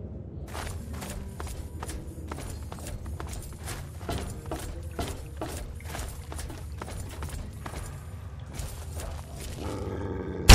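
Footsteps crunch steadily over rough ground.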